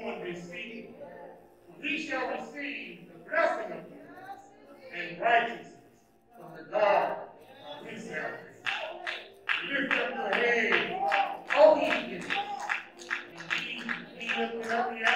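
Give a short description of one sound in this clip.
A man reads aloud slowly and solemnly into a microphone in an echoing hall.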